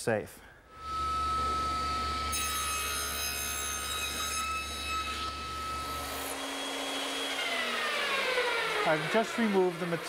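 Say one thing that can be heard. A band saw hums steadily, then winds down.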